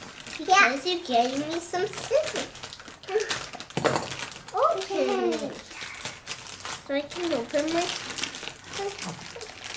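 A toddler girl babbles and talks softly.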